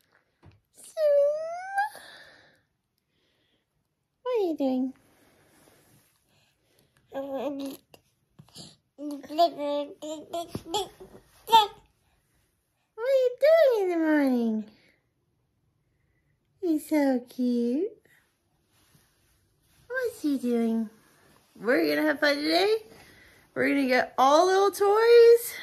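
A young woman talks playfully and close up, in a sing-song voice.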